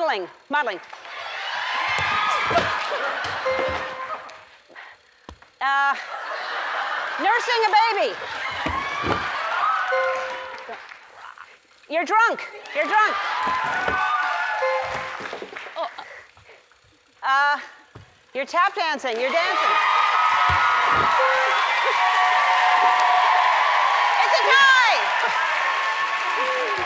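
A studio audience laughs and cheers.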